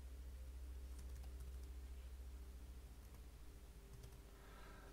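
Keys clatter on a computer keyboard in short bursts.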